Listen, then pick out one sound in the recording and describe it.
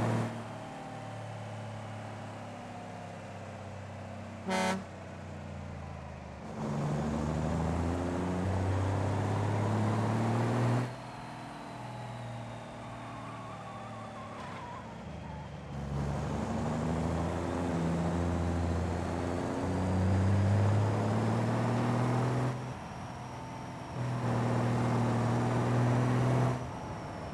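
A truck engine idles and revs up and down in bursts.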